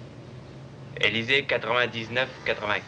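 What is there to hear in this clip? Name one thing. A man speaks into a telephone with animation.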